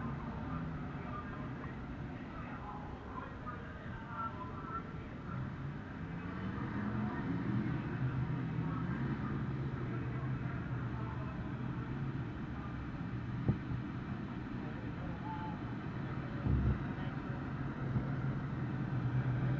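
Race car engines roar and drone around a dirt track outdoors.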